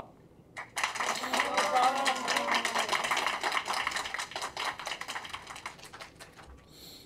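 A man speaks cheerfully through a microphone.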